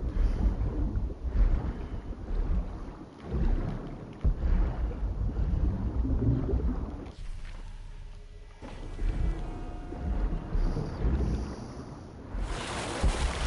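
Water churns and rumbles in a muffled way, as if heard underwater.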